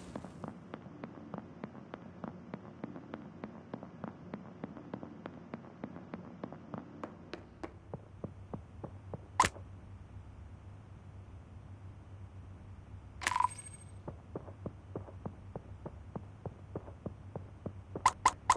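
Light footsteps tap quickly and steadily.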